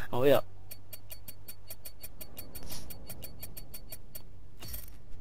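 Rapid soft electronic ticks sound as points count up.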